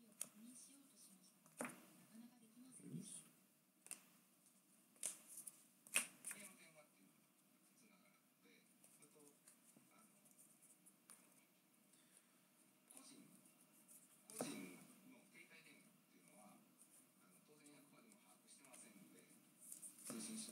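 Cards tap and click against a stack.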